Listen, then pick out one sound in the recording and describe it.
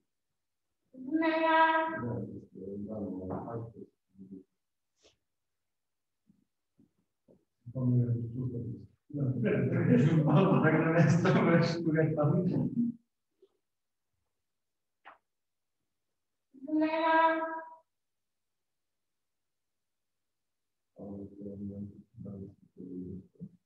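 A boy speaks through an online call, giving instructions calmly.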